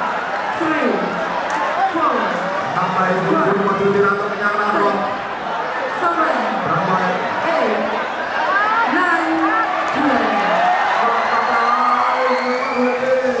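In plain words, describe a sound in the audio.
A crowd of spectators shouts and cheers loudly throughout.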